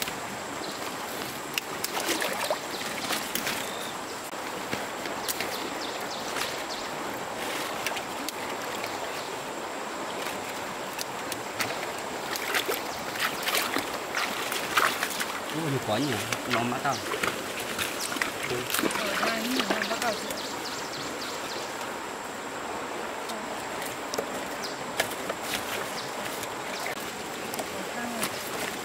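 A shallow stream flows over rocks.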